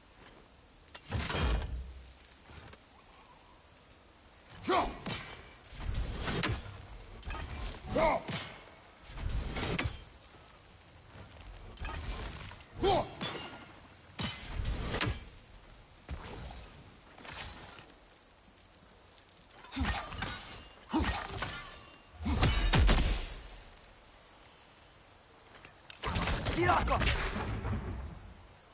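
A heavy axe strikes a target again and again with loud, ringing thuds.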